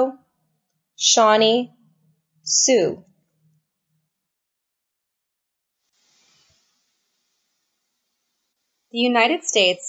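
A young adult speaks in short bursts, close and clear.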